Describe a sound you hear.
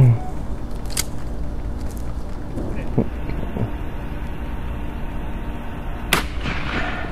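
A shotgun fires a loud shot outdoors.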